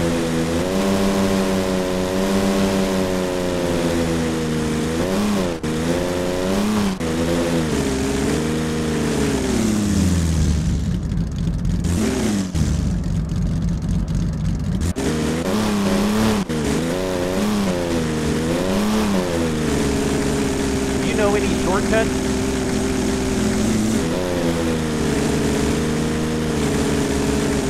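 A car engine hums and revs up and down as it drives.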